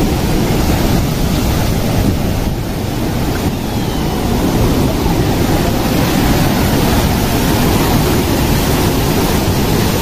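A waterfall roars and rushes loudly close by.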